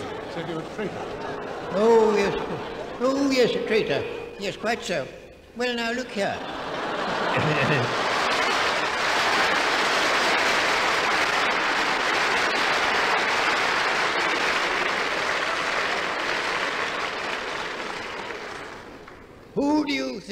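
An elderly man speaks calmly, heard through an old recording.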